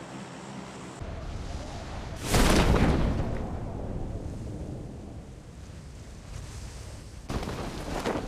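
Wind rushes loudly during a freefall.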